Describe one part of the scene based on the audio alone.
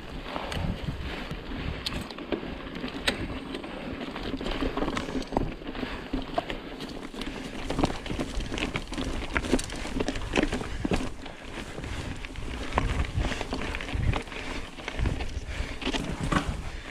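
A bicycle chain and frame clatter over bumps.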